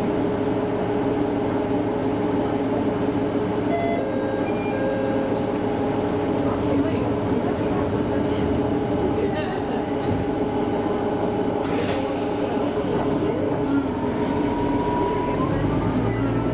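A train's diesel engine idles with a steady hum.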